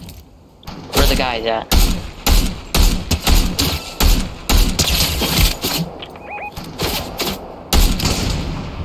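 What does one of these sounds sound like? A rifle fires repeated sharp shots.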